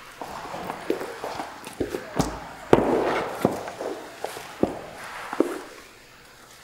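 Footsteps thud and shuffle across a wooden floor.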